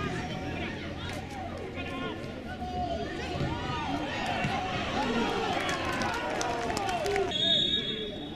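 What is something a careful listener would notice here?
Young men shout to each other across an open football pitch.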